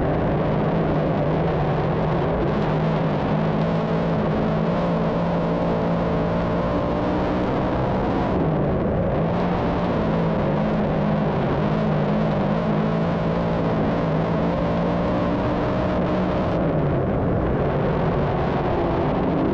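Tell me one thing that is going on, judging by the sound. A race car engine roars loudly and steadily close by.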